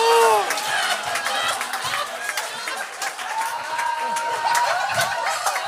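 Several young men laugh loudly together, close by.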